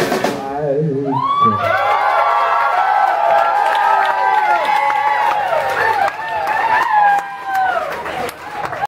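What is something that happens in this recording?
Electric guitars play loudly with bending notes.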